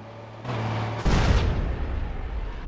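A truck bumps into a rock wall with a heavy thud.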